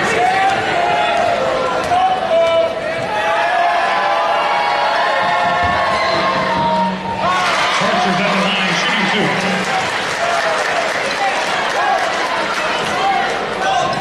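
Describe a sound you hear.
A large indoor crowd cheers and chants, echoing through a gym.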